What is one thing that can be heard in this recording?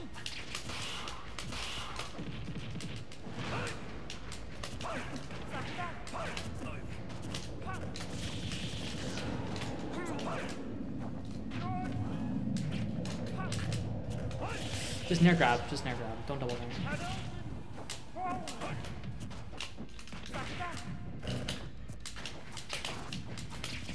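Video game hits and blasts crack and whoosh in quick bursts.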